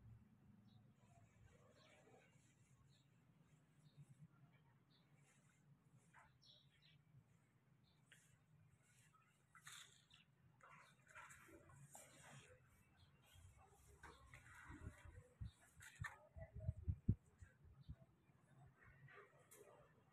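Small waves lap gently against a stone wall.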